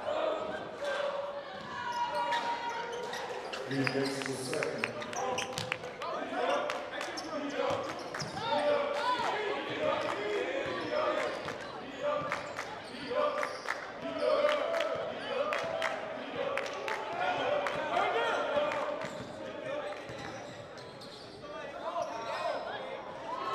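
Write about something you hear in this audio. A crowd chatters and shouts in a large echoing gym.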